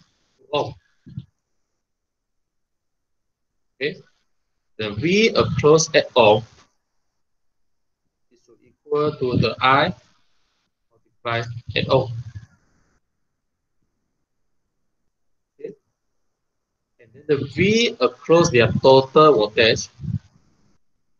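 A man speaks calmly into a microphone, explaining in short bursts with pauses.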